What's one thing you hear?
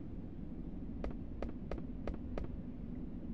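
Footsteps tap on a hard floor at an even pace.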